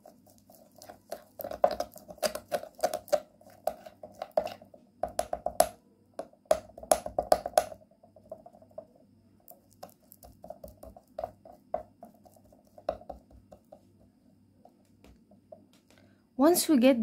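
A metal spoon scrapes and clinks against a glass bowl.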